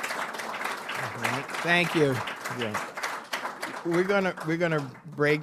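An elderly man speaks with amusement into a microphone.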